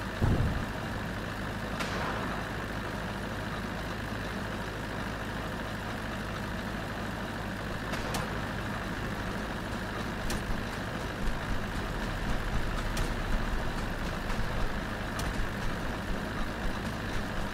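A vehicle engine hums steadily.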